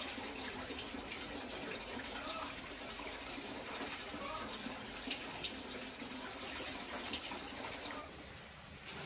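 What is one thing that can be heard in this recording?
Water splashes in a basin as clothes are scrubbed.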